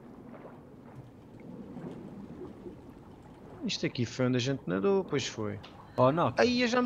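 Bubbles gurgle and rise underwater.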